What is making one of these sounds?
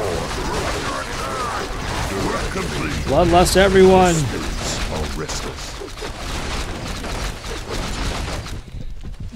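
A young man talks with animation into a close microphone, shouting out loudly at one point.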